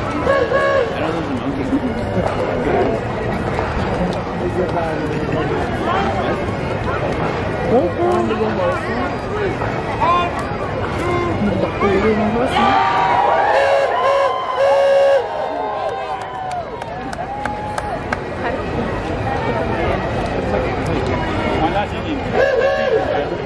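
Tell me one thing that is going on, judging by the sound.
A large crowd cheers and chatters outdoors.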